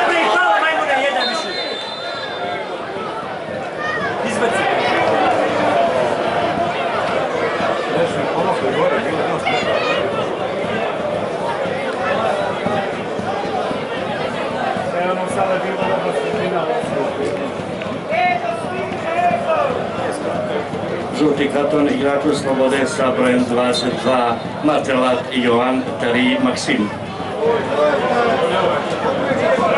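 A crowd in a large open stadium chants and cheers.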